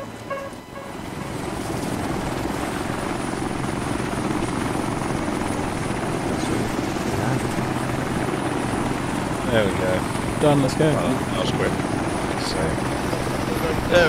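A helicopter's rotor thumps and its engine whines.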